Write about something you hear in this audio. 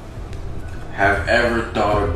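A man reads out a question at close range.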